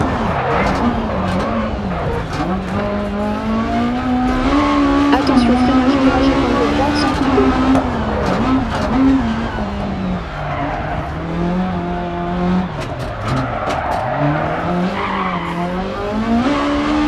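A rally car engine revs hard, its pitch rising and falling with the gear changes.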